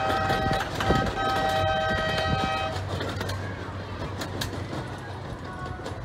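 A small train rumbles along its track.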